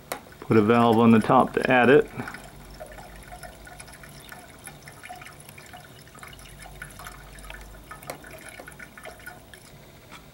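Liquid pours from a plastic bottle into a plastic funnel.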